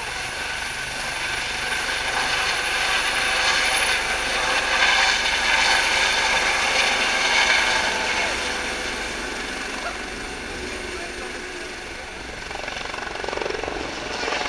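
A helicopter's engine and rotor roar, growing louder as it flies close, then fading.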